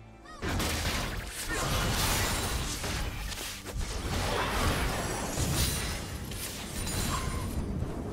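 Game spell effects whoosh and crackle in a fight.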